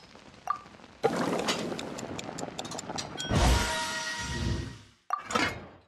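Food sizzles and crackles in a pot over a fire.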